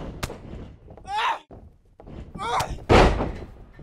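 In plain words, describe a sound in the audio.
A woman grunts and cries out in effort.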